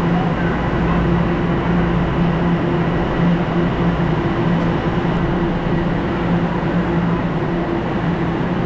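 A subway train hums while stopped at an echoing underground platform.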